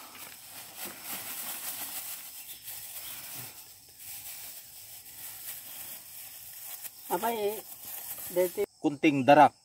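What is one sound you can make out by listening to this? A plastic bag crinkles as soil pours out of it into a bucket.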